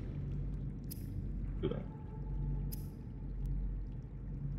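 Soft electronic beeps chirp now and then.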